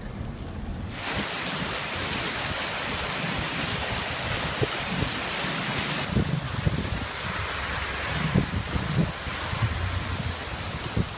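Heavy rain and hail pour down steadily outdoors.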